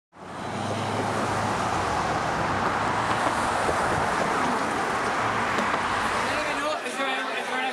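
Car traffic rumbles steadily along a road.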